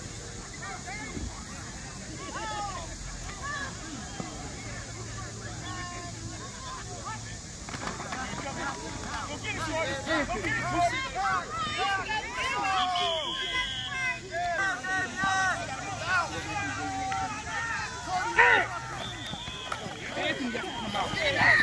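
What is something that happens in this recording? Children and adults shout and call out across an open field outdoors.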